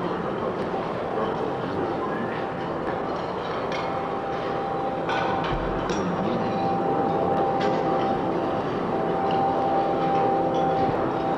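A steady synthesizer tone comes in and holds.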